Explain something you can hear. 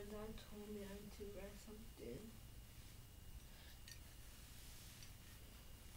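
A towel rustles as it is swung around.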